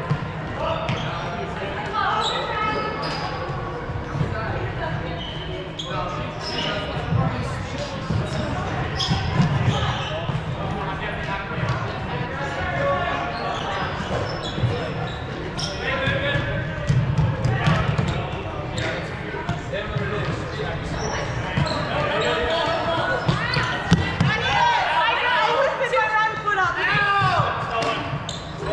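Young men and women shout and call out in a large echoing hall.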